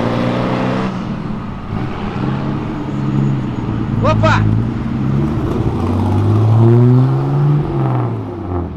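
A pickup truck engine revs up and roars away.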